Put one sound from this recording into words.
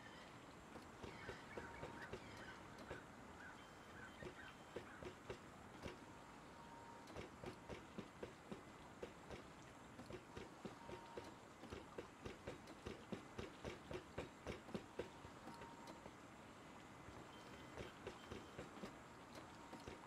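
Footsteps crunch quickly on sand.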